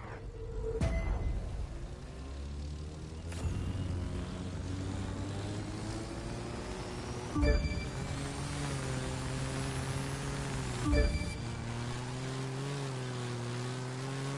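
A propeller plane's engine drones steadily and rises slightly in pitch.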